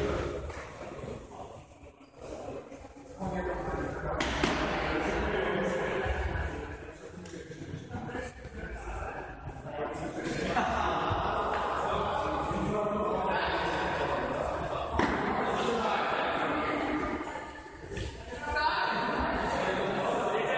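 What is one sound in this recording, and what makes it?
Young men shout and call to each other in a large echoing hall.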